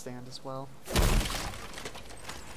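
A wooden chest bursts open with a loud crash.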